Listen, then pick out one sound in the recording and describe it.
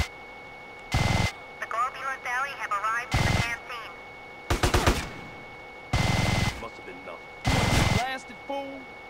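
A heavy machine gun fires in loud bursts.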